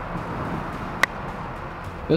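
A putter taps a golf ball with a sharp click.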